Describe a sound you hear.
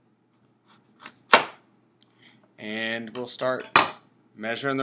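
A knife chops through a carrot and knocks on a cutting board.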